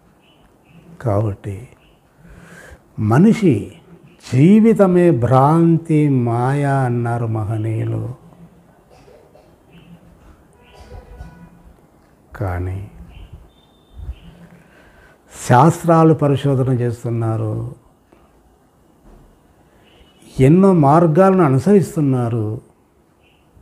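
An elderly man speaks calmly and close to a microphone, in bursts with pauses.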